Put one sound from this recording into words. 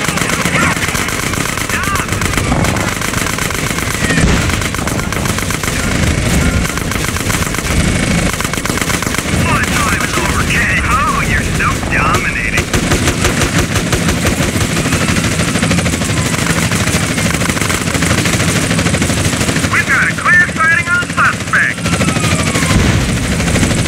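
Cars explode with loud booms.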